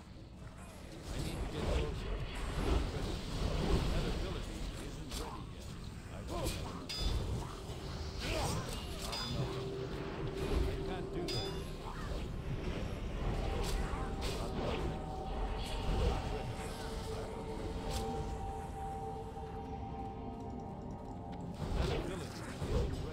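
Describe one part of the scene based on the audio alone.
Weapons clash and strike in a fierce fight.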